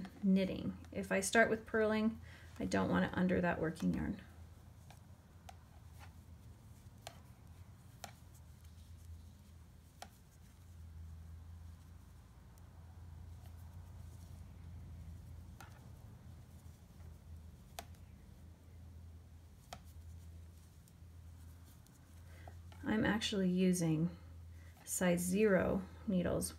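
Knitting needles click and tap softly against each other.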